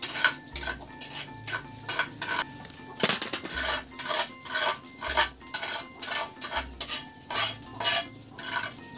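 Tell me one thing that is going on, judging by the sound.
A metal spatula scrapes and stirs food in a wok.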